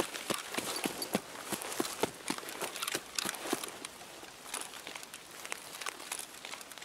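Footsteps crunch quickly over grass and gravel.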